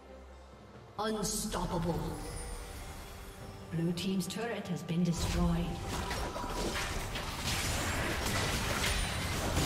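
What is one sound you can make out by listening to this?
Game fighting sound effects clash and burst.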